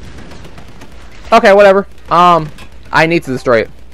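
Gunshots crack nearby.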